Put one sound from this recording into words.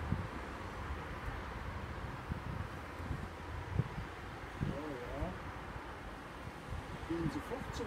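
A bee smoker puffs in short bursts.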